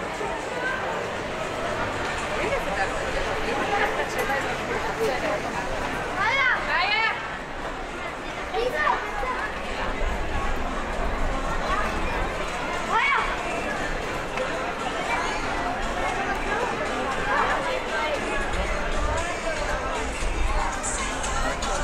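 A busy crowd murmurs and chatters all around outdoors.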